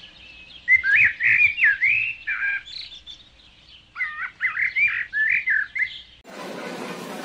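A small bird chirps and twitters in quick bursts.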